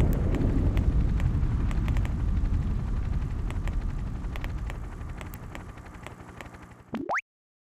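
A train's engine rumbles low and slowly fades.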